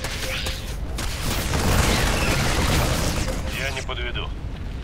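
Rapid gunfire rattles and explosions boom.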